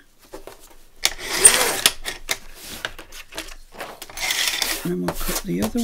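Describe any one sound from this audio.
Paper slides and rustles across a board.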